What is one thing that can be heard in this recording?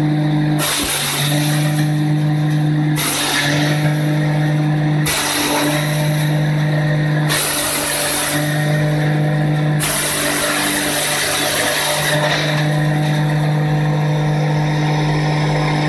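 A machine engine hums loudly and steadily close by.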